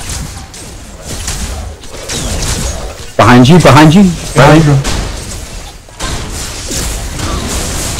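Magic energy blasts crackle and whoosh.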